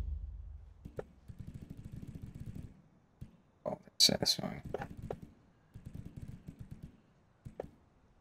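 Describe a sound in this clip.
Short menu clicks sound as selections change.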